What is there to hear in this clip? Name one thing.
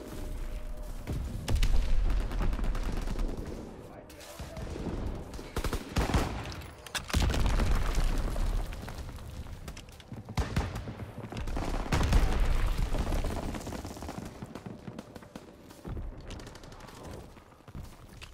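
Footsteps crunch over gravel and hard floors.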